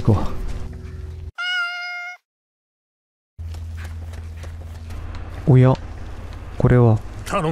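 Footsteps crunch on leaves and soil.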